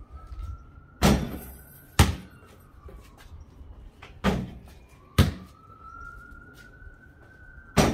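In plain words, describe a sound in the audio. A basketball hits a backboard and rim with a clang.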